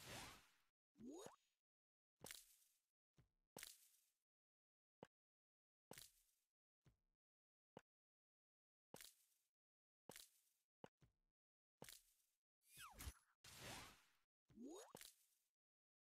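Rising whooshing effects sweep upward.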